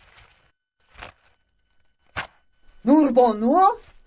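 Paper rustles as a sandwich is wrapped.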